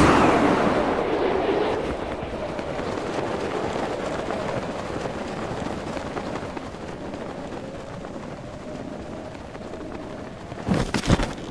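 Wind rushes steadily and slowly fades.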